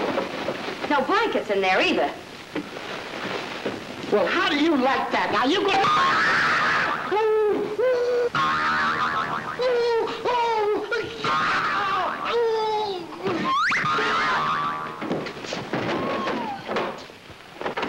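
A man shouts loudly and wails with animation.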